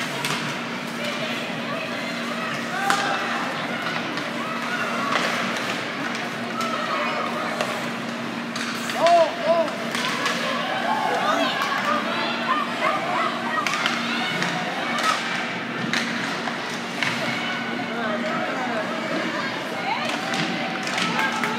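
A crowd of spectators chatters and calls out in an echoing rink.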